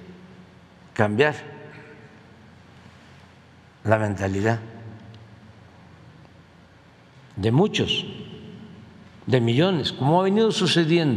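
An elderly man speaks into a microphone in short, measured phrases with pauses, echoing in a large hall.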